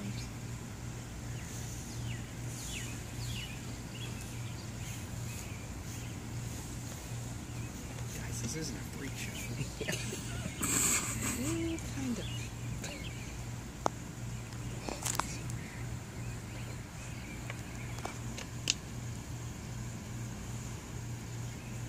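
A snake rustles faintly against grass and stone.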